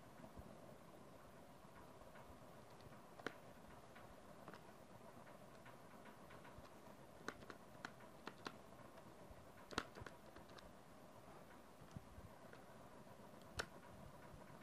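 Fingers tap the keys of a calculator with soft clicks.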